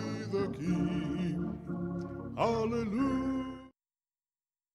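An elderly man sings into a microphone, heard through loudspeakers in a large echoing hall.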